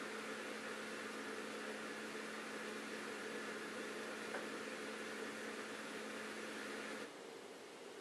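A dishwasher hums steadily as it runs, then goes quiet.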